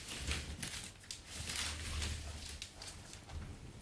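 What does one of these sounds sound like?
Boots step across a hard floor.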